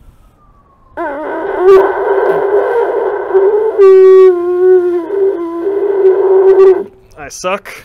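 A drinking horn blows a loud, buzzing, wavering note.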